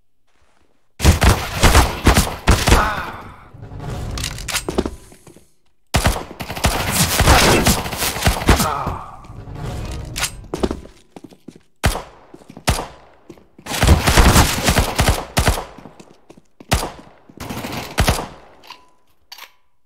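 Gunfire cracks in rapid bursts from a game.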